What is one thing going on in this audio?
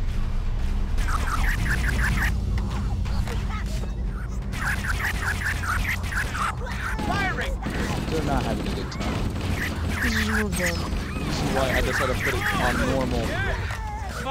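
A plasma rifle fires rapid zapping bursts.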